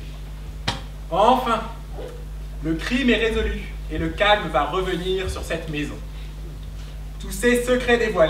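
A man speaks calmly in a large hall.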